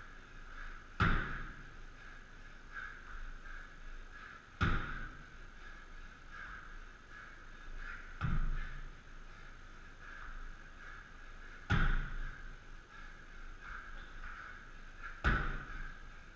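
A man lands jumps onto a wooden box with hollow thuds.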